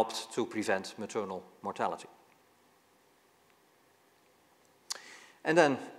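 An elderly man lectures calmly through a microphone.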